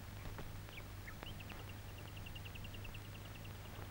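Footsteps cross a floor.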